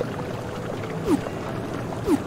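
An electronic swoosh sounds as a menu closes.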